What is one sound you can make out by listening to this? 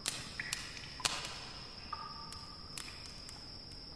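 Footsteps scuff on a stone floor.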